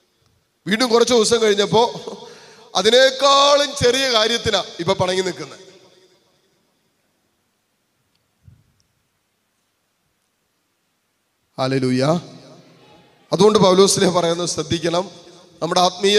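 A man preaches with feeling into a microphone, his voice carried through loudspeakers with some echo.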